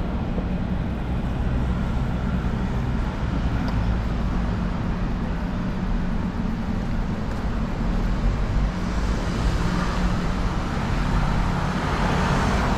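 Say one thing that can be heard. City traffic rumbles steadily nearby outdoors.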